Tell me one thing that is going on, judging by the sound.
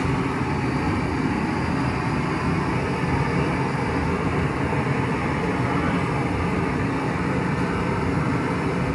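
A gas torch roars steadily up close.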